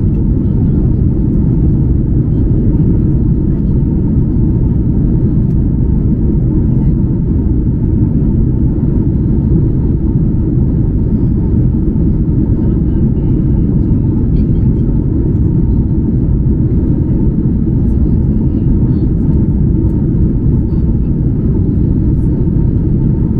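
Jet engines roar in a loud, steady low rumble inside an airliner cabin.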